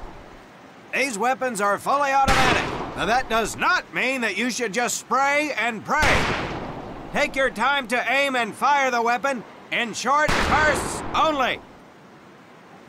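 A man speaks loudly, giving firm instructions.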